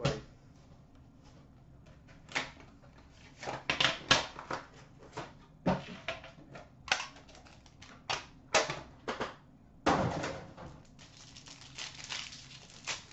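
Cardboard and plastic packaging rustles and crinkles close by.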